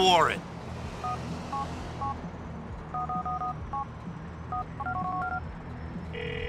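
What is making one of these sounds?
Mobile phone keys beep in short tones.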